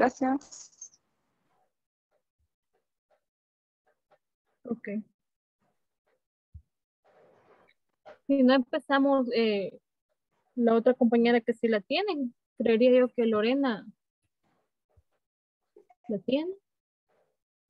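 A young woman speaks softly and emotionally, close by through a computer microphone.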